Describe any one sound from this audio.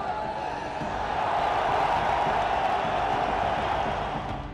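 Young women shout and cheer together.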